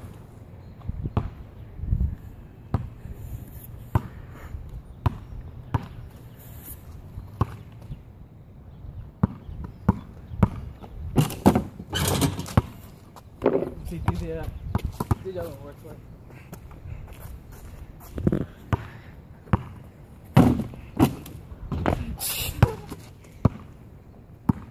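A basketball bounces on pavement.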